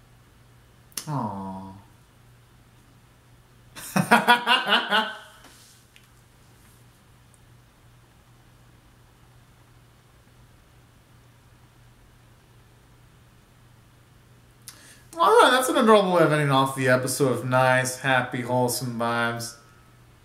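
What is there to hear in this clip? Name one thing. A young man sings close by in short, loud bursts with pauses between them.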